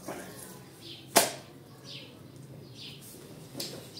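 A wet mat slaps down onto a stone floor.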